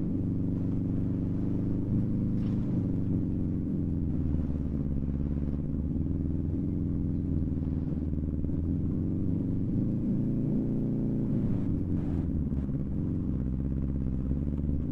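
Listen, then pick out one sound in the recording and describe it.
A car engine roars and revs up and down steadily.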